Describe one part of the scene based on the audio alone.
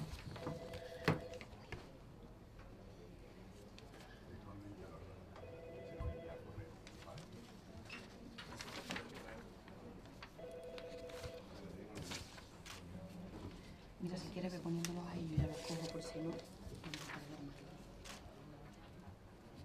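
Papers rustle and shuffle on a desk.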